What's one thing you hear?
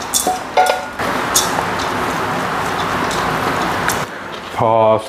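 Rice is stirred with a wooden spatula in a pot.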